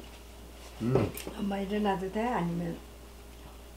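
An elderly woman speaks calmly close by.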